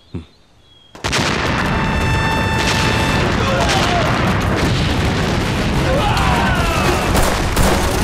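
Gunfire and explosions roar in a loud battle.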